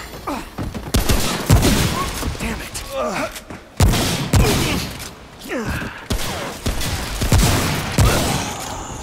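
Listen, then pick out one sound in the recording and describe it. Gunshots bang loudly, one after another, with a booming echo.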